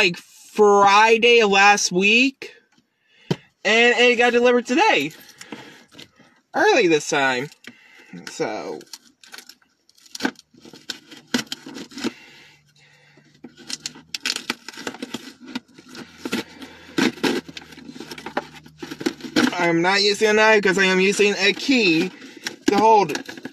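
A young man sings loudly close by, with strained, wavering notes.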